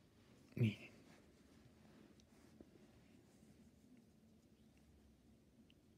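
Fingers rub and handle soft knitted fabric.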